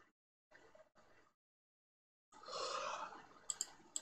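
An elderly man yawns loudly close by.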